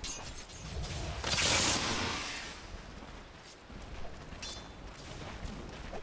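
Game weapons clash with sharp hits.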